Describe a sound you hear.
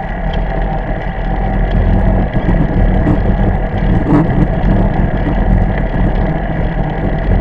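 Bicycle tyres roll over asphalt with a steady hum.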